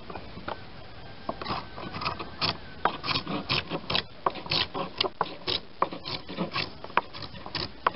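Wood knocks sharply against wood.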